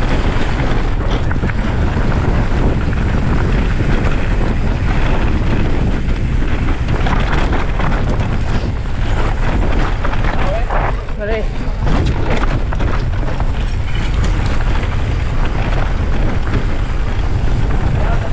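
Wind rumbles heavily across the microphone outdoors.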